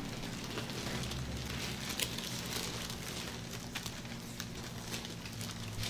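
Gloved hands rub and press on oiled skin with soft squelching sounds.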